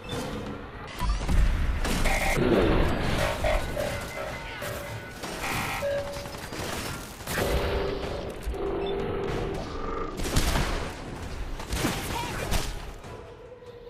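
A heavy gun fires in bursts of loud shots.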